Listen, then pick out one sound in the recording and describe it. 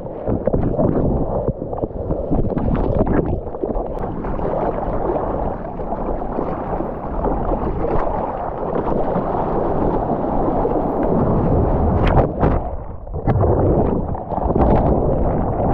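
Churning whitewater roars, muffled underwater.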